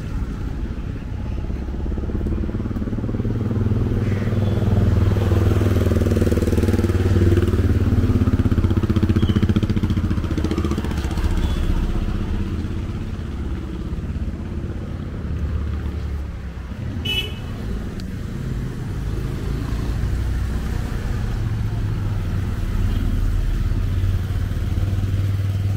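Footsteps tap on a paved path.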